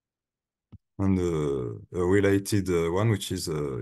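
A young man speaks calmly through a microphone in an online call.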